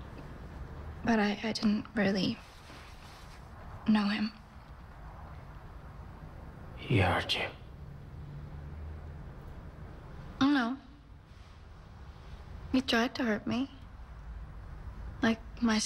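A young woman speaks quietly and hesitantly, close by.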